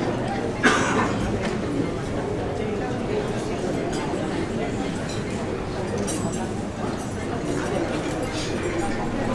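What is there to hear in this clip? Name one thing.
A group of men sing together loudly.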